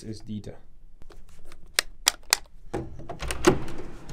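A light switch clicks.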